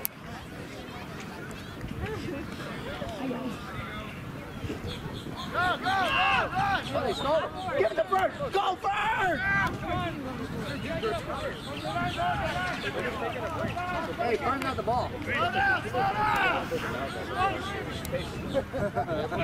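Young men shout to each other on a field outdoors.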